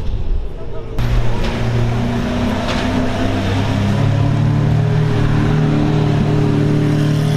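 A sports car engine rumbles loudly nearby and revs as the car drives slowly past.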